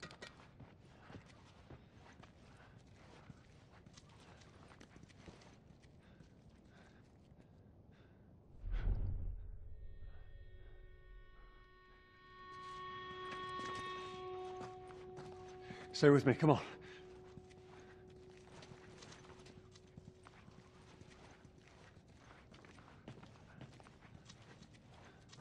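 Footsteps shuffle softly on a gritty floor.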